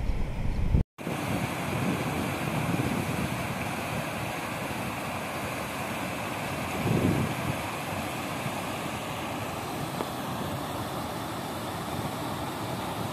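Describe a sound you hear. Water rushes steadily over a weir.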